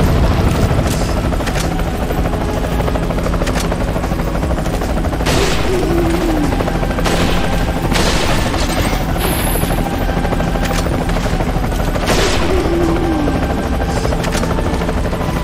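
Gunshots ring out with a sharp crack and echo.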